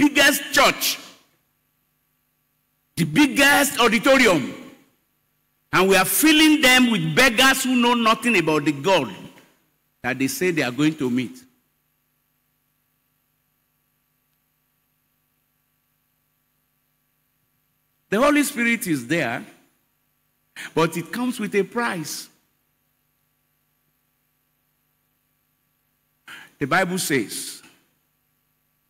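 An elderly man speaks through a microphone in animated bursts with long pauses.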